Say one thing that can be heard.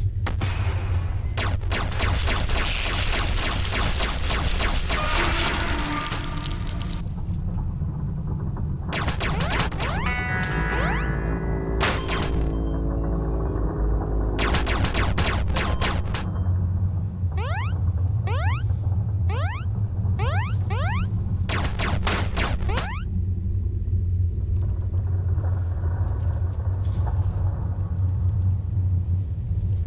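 Game music plays steadily.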